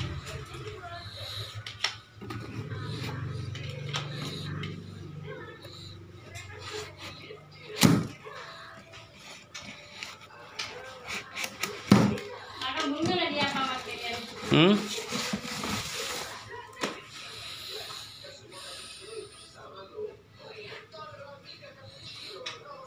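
Cardboard rustles and scrapes as it is handled.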